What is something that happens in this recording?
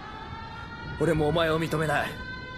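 A young man speaks angrily.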